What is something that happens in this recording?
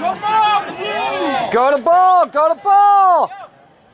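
A man close by shouts loudly.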